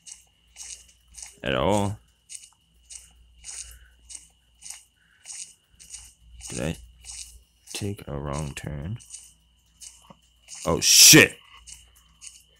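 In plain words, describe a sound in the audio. Footsteps crunch steadily through grass.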